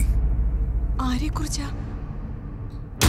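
A young woman speaks with surprise, close by.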